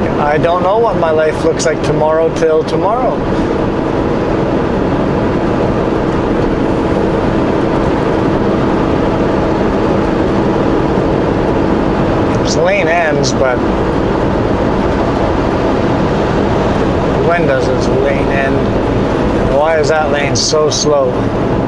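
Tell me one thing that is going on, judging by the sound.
Tyres roar steadily on a highway from inside a moving car.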